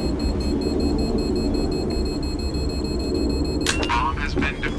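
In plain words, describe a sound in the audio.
A bomb defusing device whirs and ticks with a steady electronic tone.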